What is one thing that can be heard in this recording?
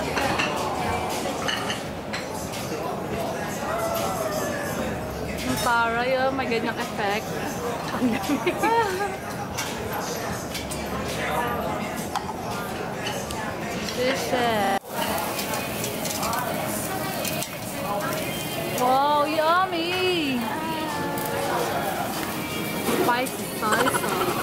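Young women chat with animation nearby.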